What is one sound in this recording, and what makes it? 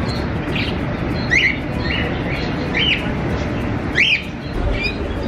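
Small parakeets chirp and twitter close by.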